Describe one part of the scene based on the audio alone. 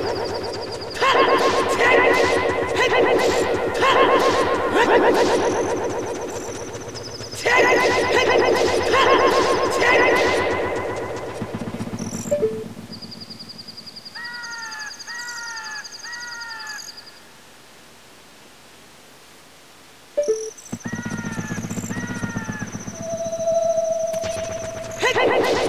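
Bright electronic game music plays in a bouncy melody.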